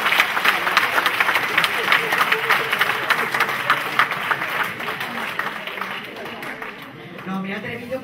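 An audience applauds in a room.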